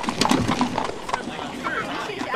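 Horses' hooves clop on stone.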